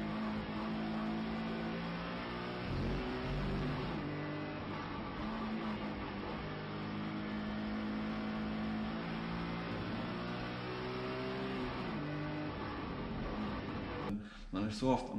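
A race car engine roars loudly from inside the cabin, its pitch rising and falling as it speeds up and slows down.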